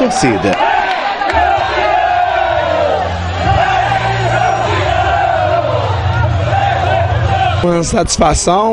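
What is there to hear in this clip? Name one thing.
A crowd cheers and chants.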